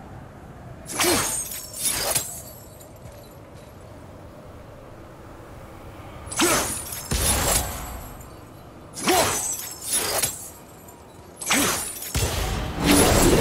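An axe strikes a target with a sharp metallic clang.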